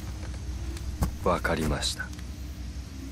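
A young man says a short word calmly.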